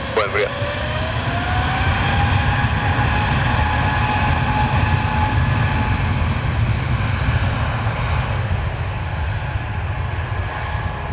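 A jet airliner's engines roar steadily as it rolls down the runway.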